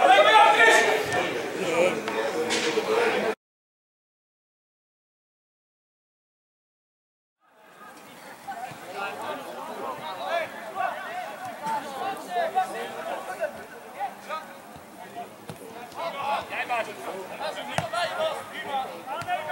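Young men shout to each other across an open football pitch outdoors.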